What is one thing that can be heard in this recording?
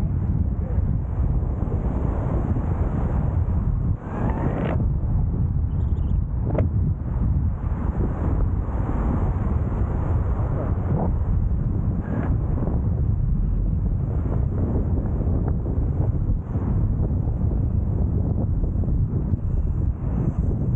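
Strong wind rushes and buffets loudly past the microphone.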